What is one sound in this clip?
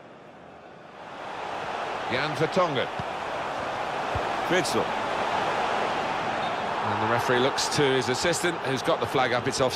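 A stadium crowd roars and cheers, swelling louder.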